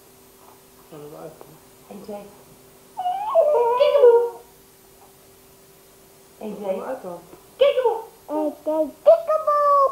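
A baby squeals and babbles close by.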